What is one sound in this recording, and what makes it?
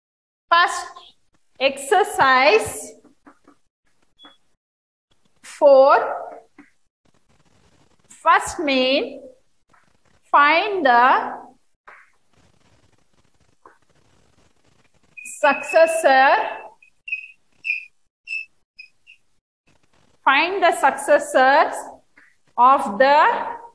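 A woman speaks clearly and calmly, close by, in short phrases with pauses.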